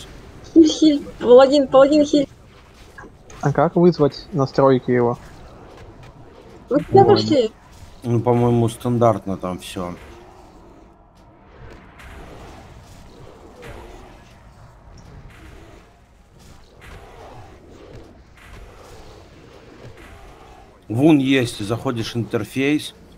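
Weapons clash and spells crackle in a fight.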